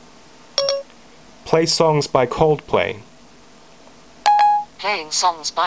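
An electronic device gives a short beep.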